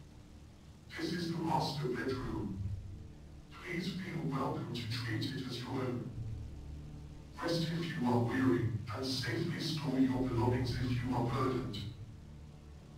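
A man speaks calmly and clearly, close by.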